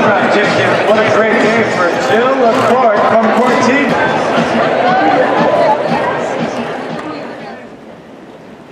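A large crowd cheers and claps loudly in an open-air stadium, then quiets down.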